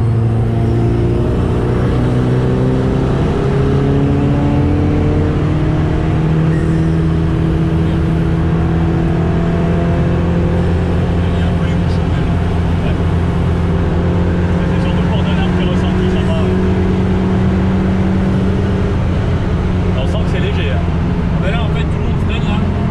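A race car engine roars loudly from inside the cabin, its pitch rising as it speeds up through the gears.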